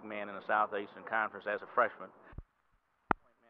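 A middle-aged man speaks into a handheld microphone, close up.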